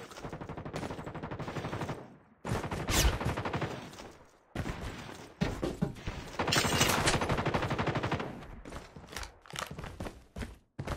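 Quick footsteps thud steadily as a figure runs.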